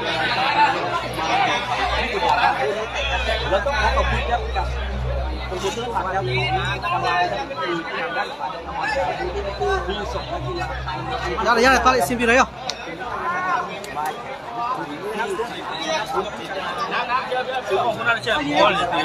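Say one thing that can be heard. A large crowd of young men and women chatters and shouts loudly outdoors.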